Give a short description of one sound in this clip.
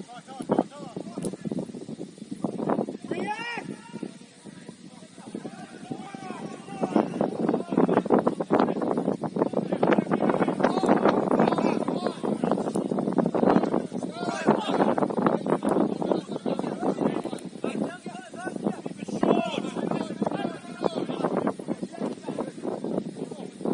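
Young players shout to each other from across an open outdoor pitch.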